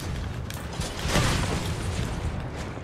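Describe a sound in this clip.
A fiery explosion roars nearby.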